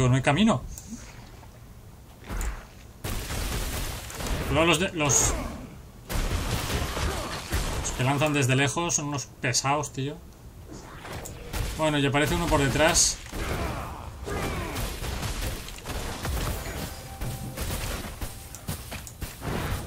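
Game combat effects crash and whoosh.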